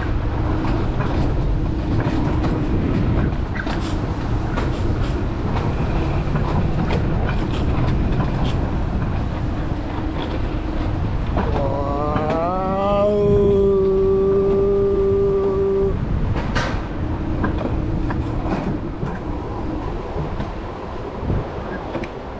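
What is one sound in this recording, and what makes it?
Wind rushes past a moving rider outdoors.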